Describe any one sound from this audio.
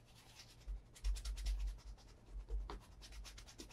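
A hand rubs quickly over a leather shoe.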